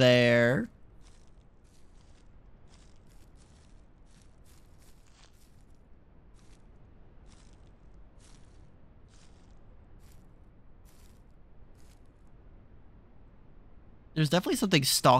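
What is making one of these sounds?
Footsteps crunch softly on dry leaves and twigs.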